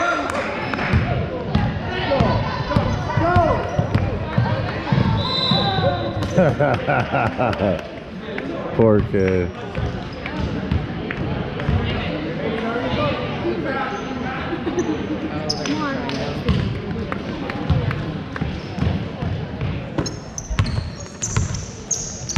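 A crowd of spectators talks and cheers in an echoing gym.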